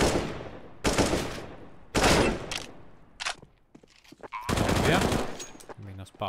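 Loud rifle shots bang out in short bursts, echoing outdoors.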